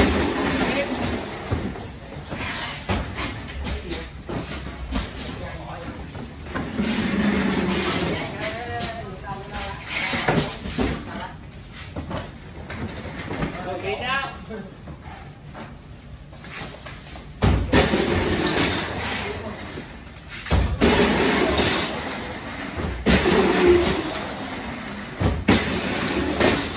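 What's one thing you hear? Cardboard boxes thump and scrape as they are lifted and stacked.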